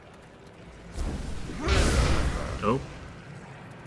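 Flames burst up with a loud whoosh.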